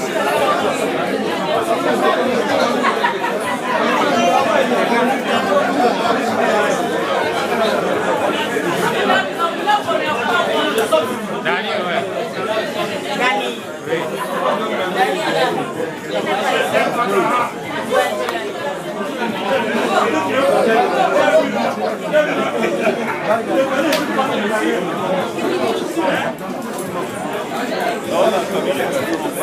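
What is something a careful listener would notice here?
A crowd of men and women chatter loudly all around, close by.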